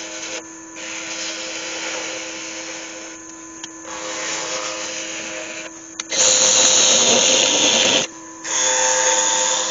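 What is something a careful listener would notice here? A chisel scrapes and hisses against spinning wood in bursts.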